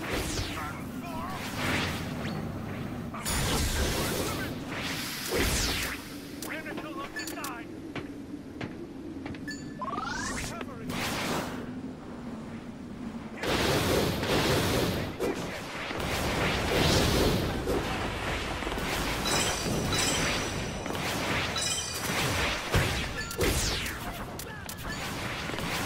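Whooshing sweeps of game effects come and go.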